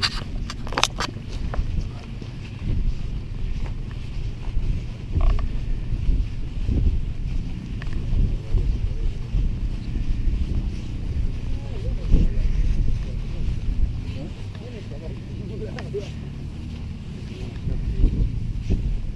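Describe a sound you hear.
Footsteps swish and crunch through dry grass.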